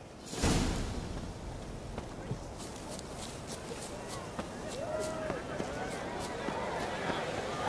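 Footsteps crunch on a rocky path.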